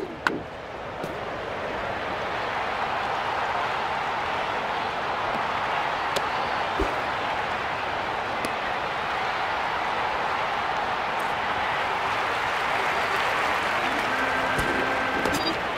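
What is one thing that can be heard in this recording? A stadium crowd cheers and roars, growing louder.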